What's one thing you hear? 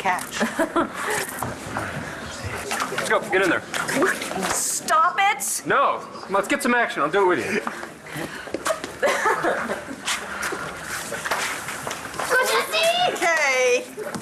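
A crowd of men and women chatters and cheers in a large room.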